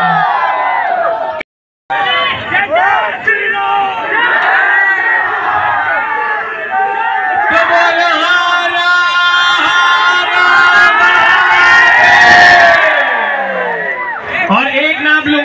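A young man sings through a microphone over loudspeakers.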